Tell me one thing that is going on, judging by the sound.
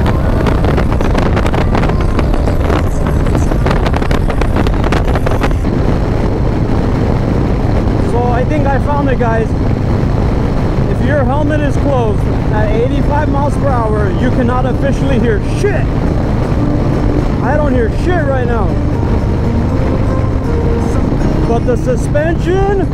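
Wind roars and buffets loudly past a moving motorcycle.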